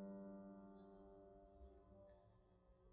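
A piano's last chord rings out and fades into silence.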